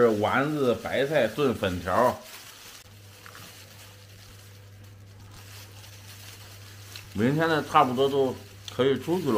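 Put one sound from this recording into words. A man talks calmly and close by.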